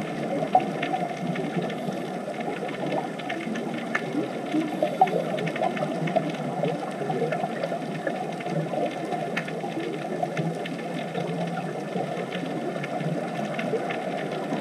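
Scuba divers' air bubbles gurgle and burble steadily underwater.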